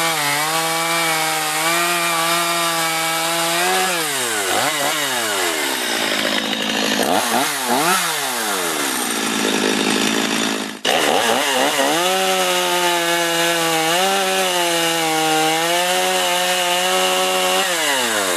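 A chainsaw cuts through a log with a steady, labouring drone.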